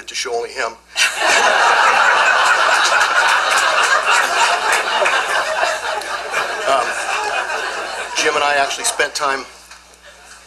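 A woman laughs near a microphone.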